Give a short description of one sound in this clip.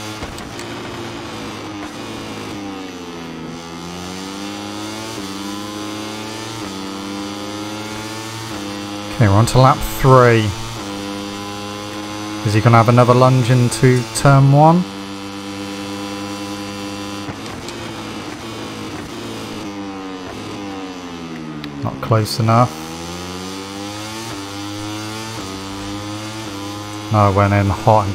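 A racing motorcycle engine roars, rising and falling in pitch as it shifts gears.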